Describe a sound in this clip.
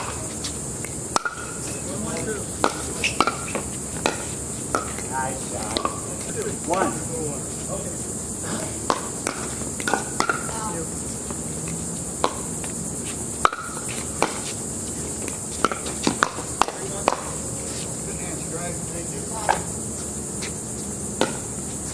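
Paddles pop sharply against a plastic ball, again and again.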